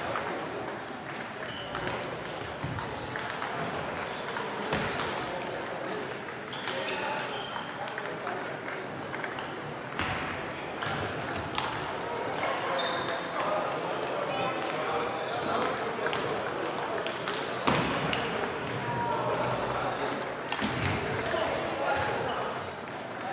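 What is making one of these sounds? Table tennis balls click sharply on tables and paddles.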